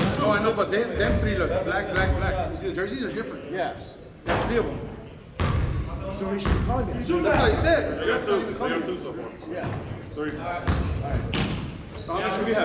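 Young men talk and call out in a large echoing hall.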